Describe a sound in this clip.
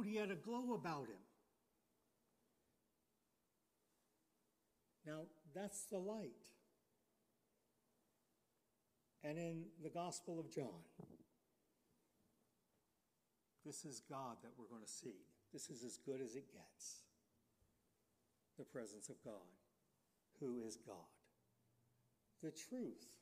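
An elderly man speaks slowly and deliberately through a microphone, with long pauses.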